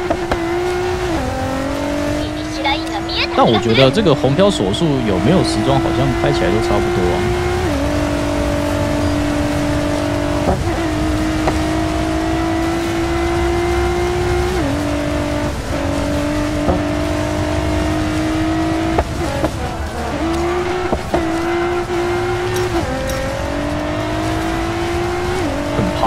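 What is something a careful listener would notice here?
A racing car engine roars steadily, rising in pitch and dropping with each gear change.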